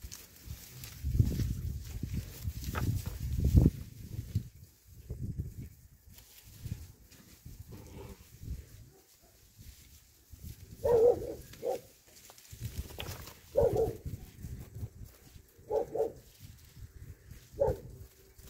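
Puppies growl and yap as they play-fight.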